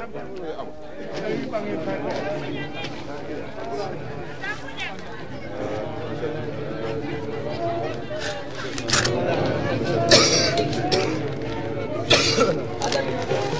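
A group of men murmur and chant together in low voices.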